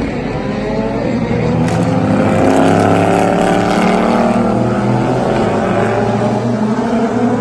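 Racing car engines roar loudly as the cars speed past.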